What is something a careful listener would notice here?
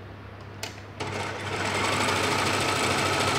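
A serger sewing machine runs fast with a steady whirring hum.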